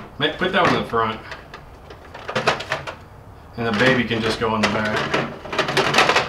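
Toys clatter against each other in a box.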